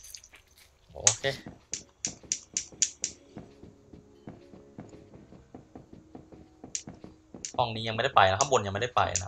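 Footsteps tap quickly in a game.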